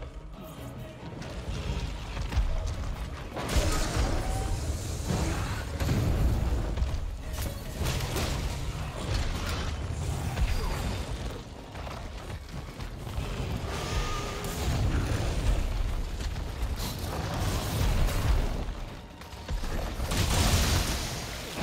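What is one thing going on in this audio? A huge beast growls and rumbles deeply.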